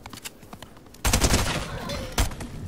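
Gunshots fire in a loud burst.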